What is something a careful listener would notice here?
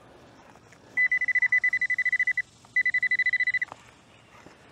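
An electronic detector beeps rapidly in a steady high tone.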